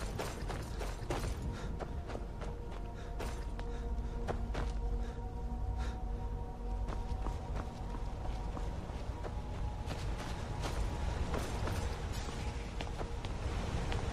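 Footsteps crunch on stone and gravel.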